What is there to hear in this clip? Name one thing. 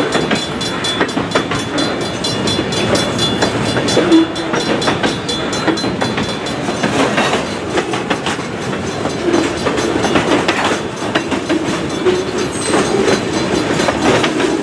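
A freight train rumbles past close by, its wheels clattering rhythmically over the rail joints.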